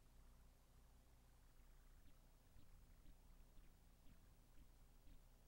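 A shallow river flows and ripples over stones.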